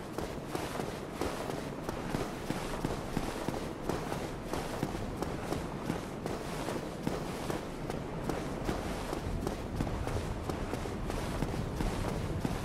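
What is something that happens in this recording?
Armoured footsteps clank quickly on stone stairs.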